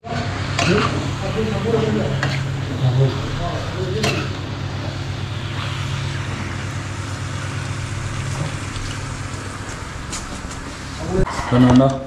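Meat sizzles and fries in a pan.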